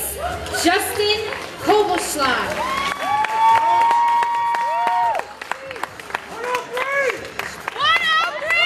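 A crowd cheers and shouts loudly in a large hall.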